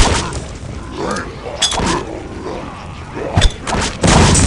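A creature screams in pain.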